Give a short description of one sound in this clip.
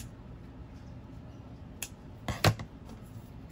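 Scissors snip through ribbon.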